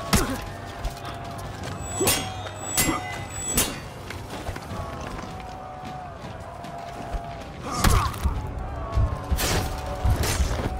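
Metal weapons clash and strike with sharp clangs.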